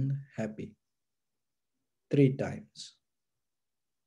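A man speaks calmly and softly into a nearby microphone, then falls silent.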